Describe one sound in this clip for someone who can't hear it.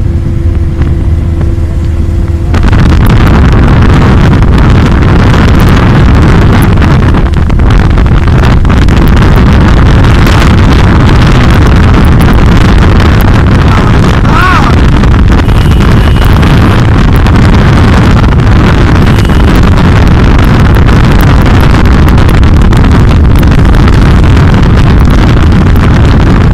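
Wind rushes loudly past an open car window at speed.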